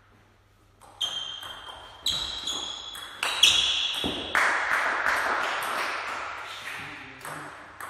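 A player's shoes squeak on the hall floor.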